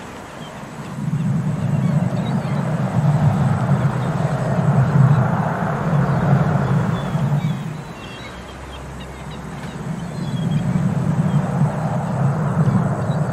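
A glass ball rolls over wooden boards with a low rumble.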